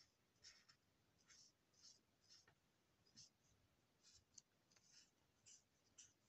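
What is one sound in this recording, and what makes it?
A marker tip scratches in short, quick strokes on paper.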